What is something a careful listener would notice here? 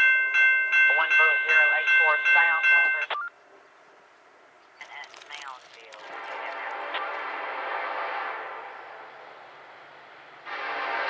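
A train horn blows loud, repeated blasts close by.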